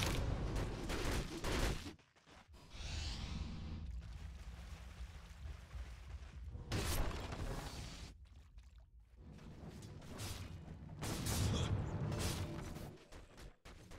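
Fighting sounds and spell effects clash and crackle in bursts.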